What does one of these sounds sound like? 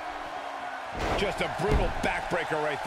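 A body slams hard onto a wrestling ring mat with a heavy thud.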